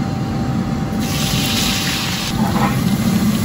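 Broccoli tumbles into a hot wok with a loud sizzle.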